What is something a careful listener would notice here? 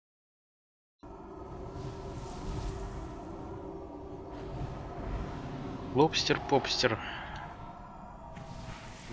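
Magic spells and combat effects clash and rumble in a fantasy battle.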